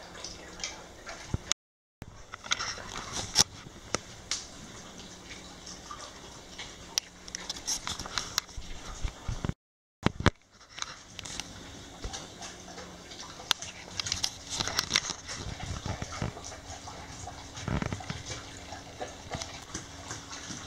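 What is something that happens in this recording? A dog eats noisily from a metal bowl, chewing and lapping.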